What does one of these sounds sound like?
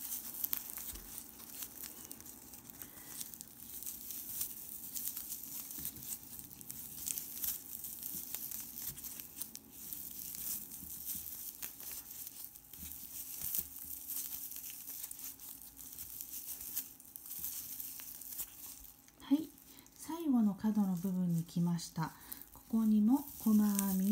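Yarn rustles softly as a crochet hook pulls loops through it.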